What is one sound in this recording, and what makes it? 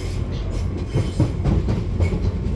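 Train wheels clatter and knock over rail joints.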